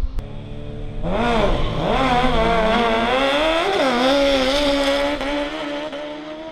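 Motorcycle engines scream as two motorcycles launch and speed away.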